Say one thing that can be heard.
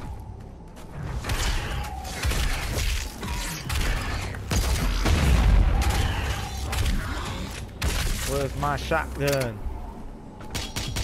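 Rapid gunfire blasts out in bursts.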